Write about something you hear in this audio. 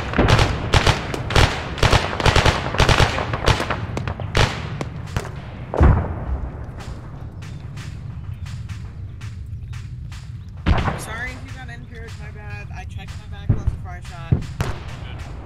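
Gunfire cracks in rapid shots, close by.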